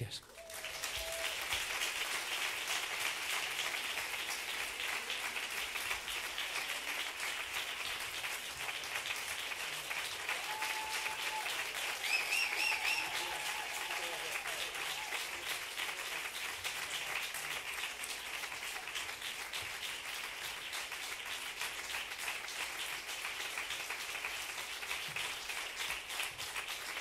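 A large audience claps and applauds steadily in an echoing hall.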